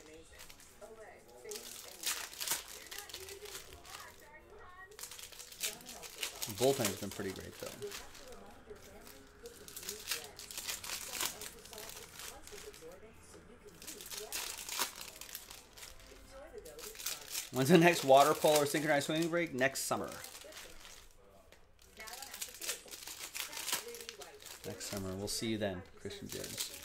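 Foil card packs crinkle and tear as they are ripped open.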